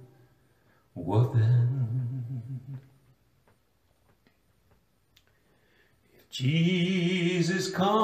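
A man sings close into a microphone in a low, drawn-out voice.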